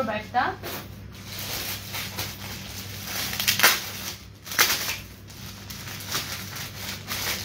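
Plastic wrapping rustles and crinkles close by.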